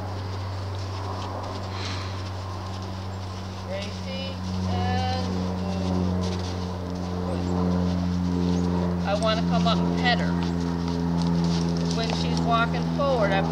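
A horse's hooves thud softly on sand as it walks.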